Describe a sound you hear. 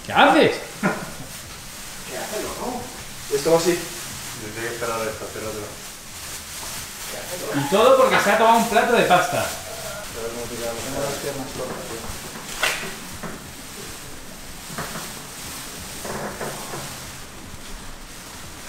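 Plastic sheeting crinkles and rustles.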